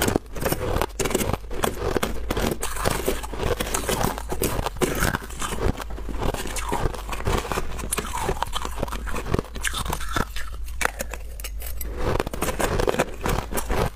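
A spoon scrapes and scoops crushed ice close by.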